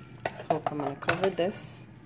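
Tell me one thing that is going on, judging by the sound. A spoon stirs and scrapes in a metal pot.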